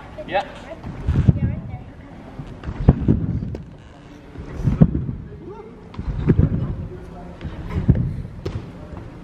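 Heavy gym mats thump dully onto the floor.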